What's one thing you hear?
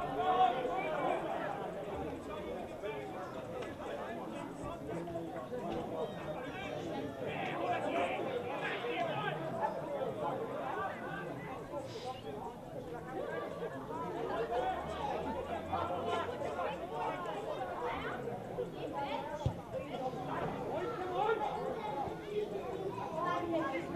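A crowd of men and women chatters and calls out nearby outdoors.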